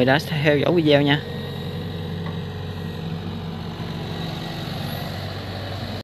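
An excavator's diesel engine rumbles steadily.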